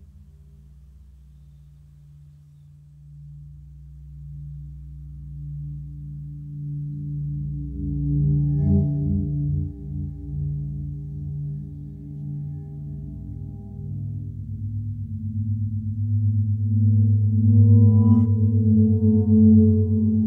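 A reel-to-reel tape machine whirs steadily as its reels spin.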